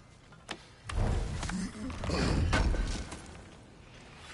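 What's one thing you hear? A heavy wooden chest creaks and thuds open.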